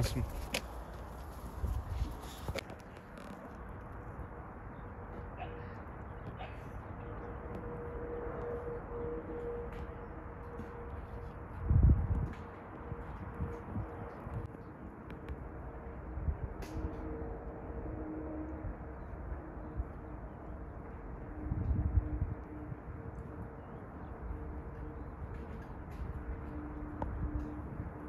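Wind blows steadily outdoors, with louder gusts now and then.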